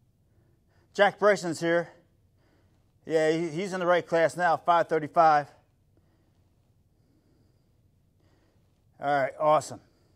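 A middle-aged man speaks calmly and clearly close to a microphone, with pauses.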